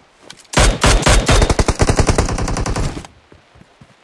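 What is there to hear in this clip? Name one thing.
A rifle fires rapid loud bursts of shots.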